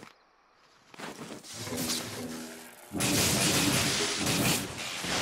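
Electric blasts crackle and roar loudly.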